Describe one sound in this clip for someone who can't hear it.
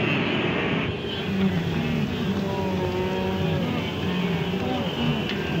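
Wildebeest grunt and bellow nearby.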